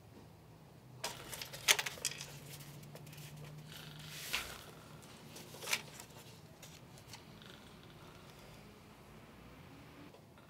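Papers rustle and a drawer knocks softly close by.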